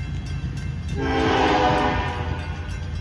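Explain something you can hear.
A train horn blows loudly.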